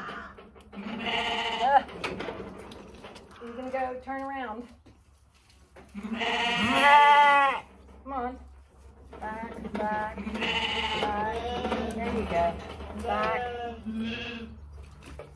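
Sheep bleat loudly nearby.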